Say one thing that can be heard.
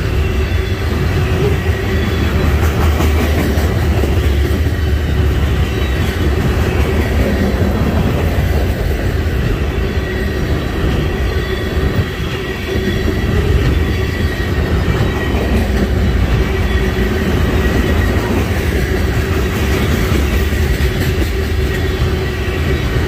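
Steel wheels clack rhythmically over rail joints.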